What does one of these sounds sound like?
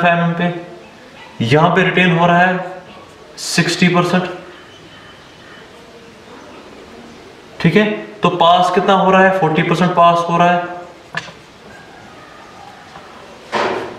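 A young man speaks calmly and clearly nearby.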